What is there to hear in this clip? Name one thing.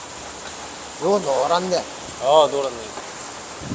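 A middle-aged man speaks casually up close.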